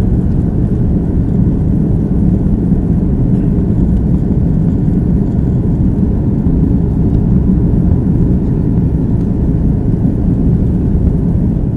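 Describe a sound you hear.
Jet engines roar steadily inside an airplane cabin.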